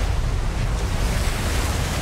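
A huge creature bursts from the water in a big splash.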